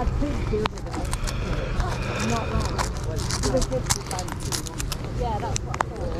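Fingers rustle through cards in a leather wallet.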